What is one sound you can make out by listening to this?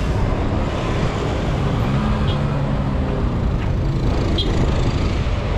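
A motorbike engine putters close by.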